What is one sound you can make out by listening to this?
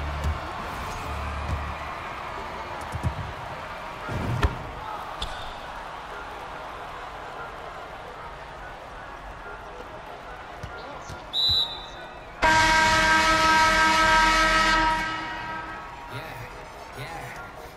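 A crowd murmurs and cheers steadily in a large arena.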